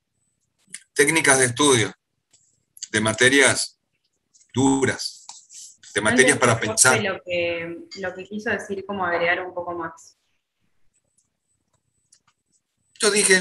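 A middle-aged man speaks calmly over an online call, in bursts with pauses.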